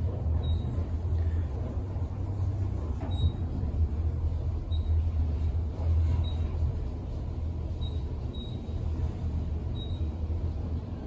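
An elevator beeps briefly as it passes each floor.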